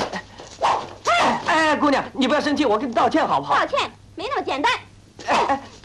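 A young man and a young woman argue loudly, close by.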